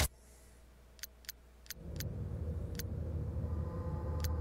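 Short electronic blips sound one by one as game scores pop up.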